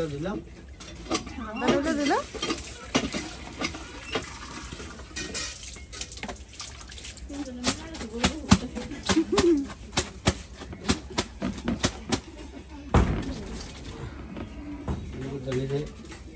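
Wet clothes slosh and splash as they are scrubbed by hand.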